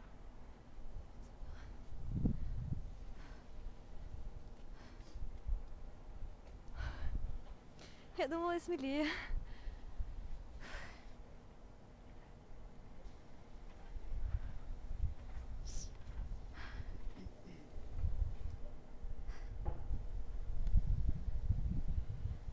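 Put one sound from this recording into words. Wind gusts across the microphone high up outdoors.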